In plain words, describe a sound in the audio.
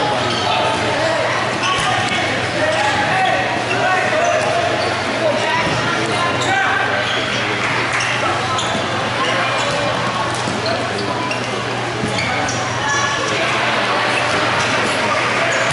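Young men shout to each other across a large echoing hall.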